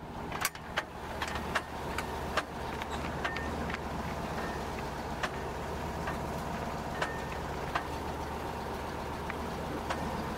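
A truck engine rumbles steadily at low pitch.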